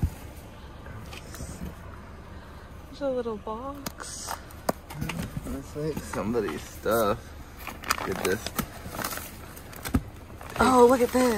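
Fabric and paper rustle as hands rummage through a cardboard box.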